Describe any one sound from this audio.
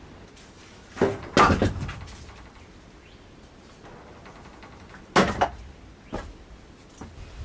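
Split logs are tossed and clatter onto a wooden pile.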